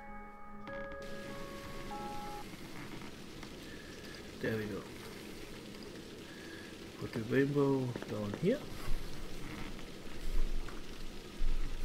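Water pours steadily down a waterfall.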